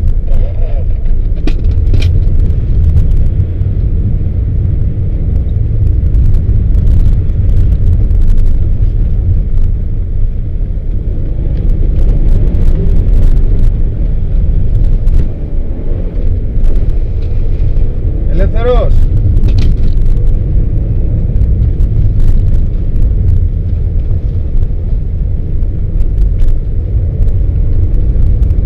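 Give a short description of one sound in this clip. Tyres crunch and rumble over a snowy road.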